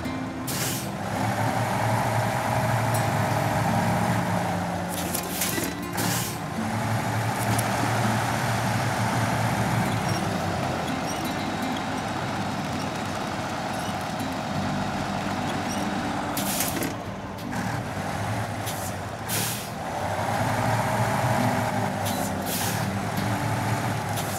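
A truck's diesel engine roars and strains in low gear.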